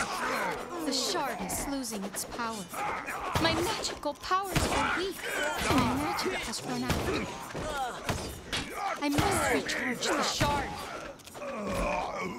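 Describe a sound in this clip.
Weapons strike and clash in a fight.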